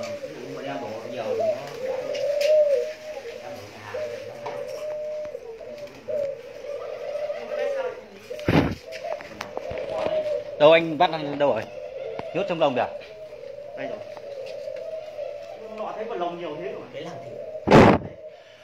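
Doves coo softly and steadily nearby.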